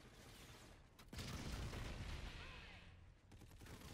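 A large explosion booms and roars.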